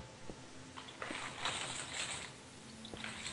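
Stone blocks crunch and crumble as they are broken.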